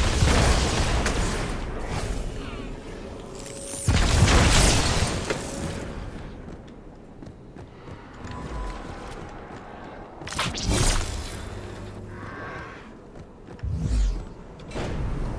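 An energy sword swings with a loud humming whoosh.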